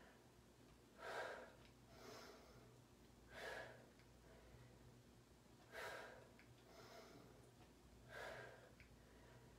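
A woman breathes out audibly in a slow rhythm.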